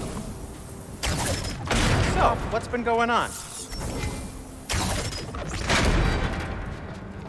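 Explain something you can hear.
A bow shoots an arrow that strikes a metal gate with a ringing hum.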